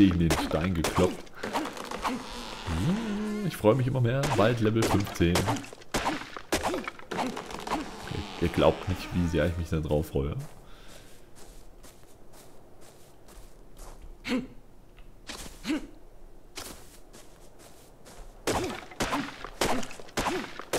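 A hatchet chops into a tree trunk with dull, repeated knocks.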